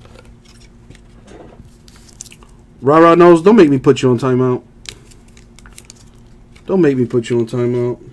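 Trading cards shuffle and rustle in hands.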